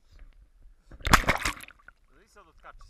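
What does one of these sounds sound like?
Water gurgles as something dips under the surface.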